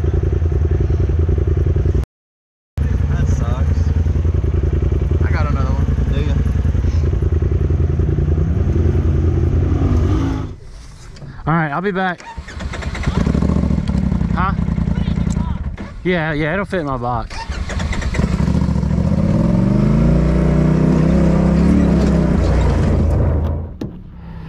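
An off-road vehicle engine rumbles and revs close by.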